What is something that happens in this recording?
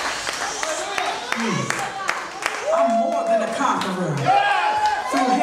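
A person claps hands.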